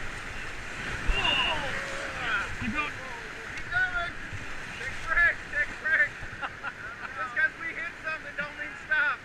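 Men shout and whoop excitedly nearby.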